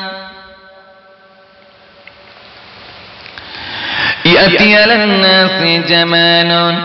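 A man preaches in a loud, chanting voice through a microphone.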